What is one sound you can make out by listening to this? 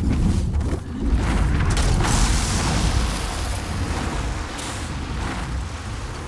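A dragon breathes a roaring blast of fire.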